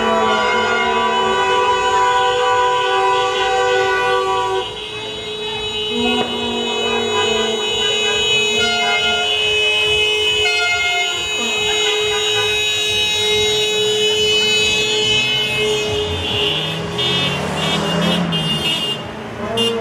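Cars drive slowly past with engines running.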